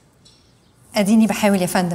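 A young woman speaks warmly and close by.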